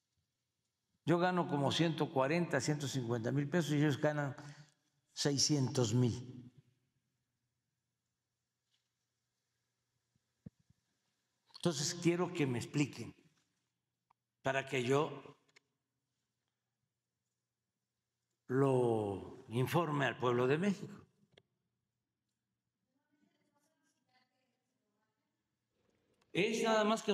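An elderly man speaks calmly into a microphone in bursts, with long pauses.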